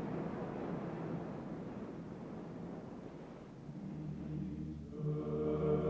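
Waves roll and break against the surf.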